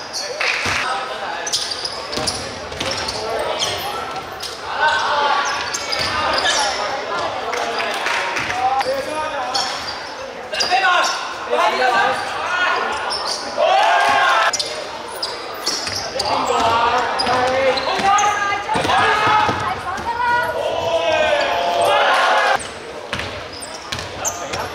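Young men call out and shout in an echoing hall.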